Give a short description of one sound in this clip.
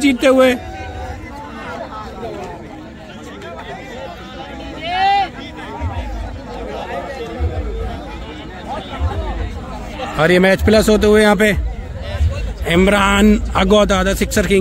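A group of young men talk and call out to each other outdoors.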